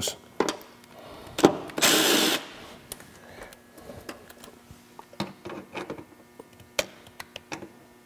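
A metal socket clicks and clanks against a wheel nut.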